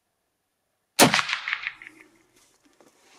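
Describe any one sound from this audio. A rifle shot cracks loudly and echoes down a long hard tunnel.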